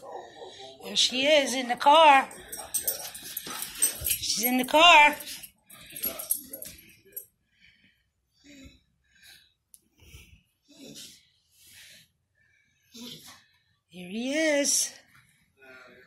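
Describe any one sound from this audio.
A dog whines and howls nearby in high, rising and falling cries.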